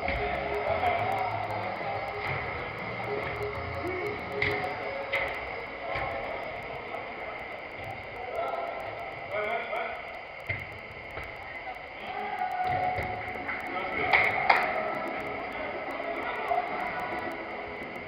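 Men shout and call out to each other in a large echoing hall.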